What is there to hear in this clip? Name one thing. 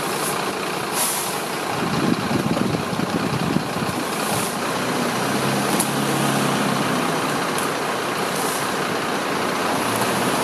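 Leaves rustle as men drag a fallen tree branch across pavement.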